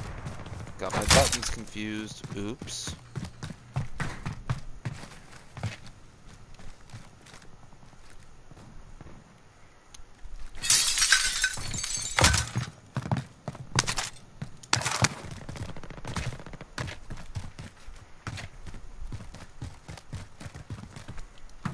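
Footsteps thud steadily on hard floors and ground.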